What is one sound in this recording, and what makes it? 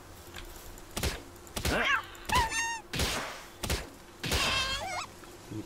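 A wooden club thumps hard against a creature several times.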